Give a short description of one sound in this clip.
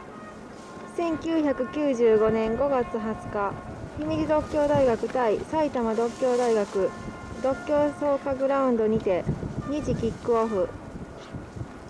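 A man talks loudly outdoors.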